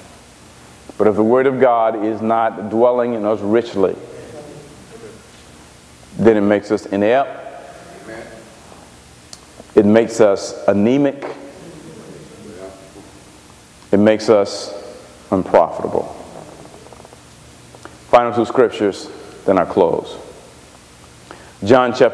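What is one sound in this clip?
A man preaches with animation through a microphone in a large echoing hall, speaking in bursts with pauses.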